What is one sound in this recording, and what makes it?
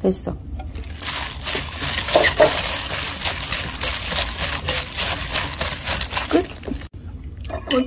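A gloved hand squishes and mixes wet food in a bowl, with plastic crinkling.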